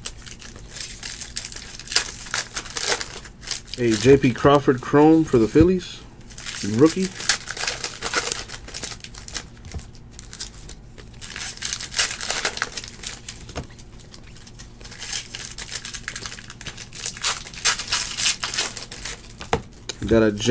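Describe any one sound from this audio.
Trading cards rustle and slide against each other as they are shuffled by hand, close up.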